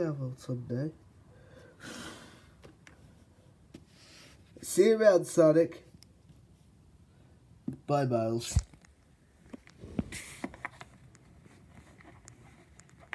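Plastic toy figures click and tap softly as they are handled.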